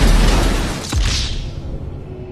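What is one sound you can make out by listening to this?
A plane crashes into water with a loud splash.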